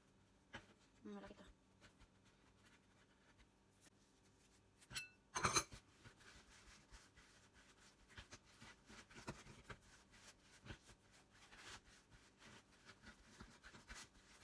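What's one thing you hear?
Hands knead and press soft dough on a board with soft thumps and rubbing.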